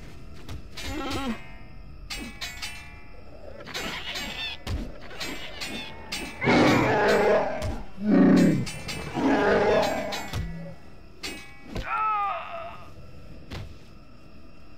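Blades clash and whoosh in a fight.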